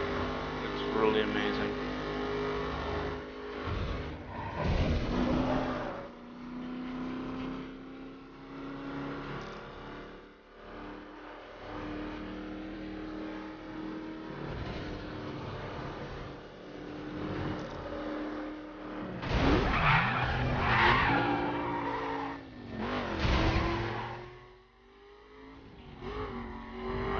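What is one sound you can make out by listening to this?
A car engine roars steadily at high revs.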